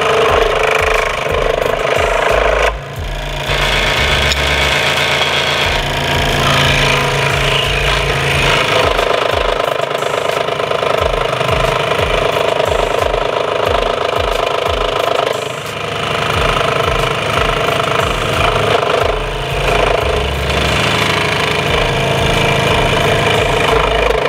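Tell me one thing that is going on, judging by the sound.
A scroll saw buzzes as it cuts through wood.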